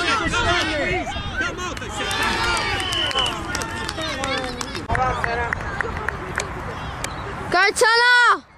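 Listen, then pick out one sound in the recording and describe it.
Young children shout and cheer excitedly outdoors.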